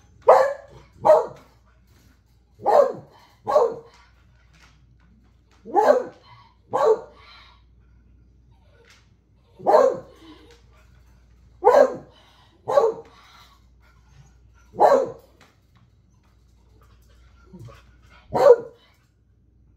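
An adult woman gives short, calm commands to a dog, close by.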